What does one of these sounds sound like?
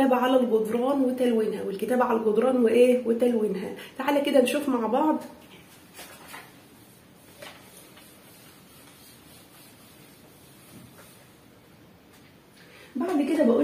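A woman speaks calmly and with animation close to a microphone.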